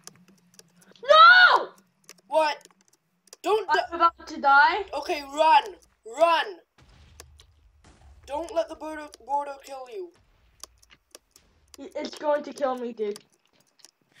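A young boy talks with animation close to a headset microphone.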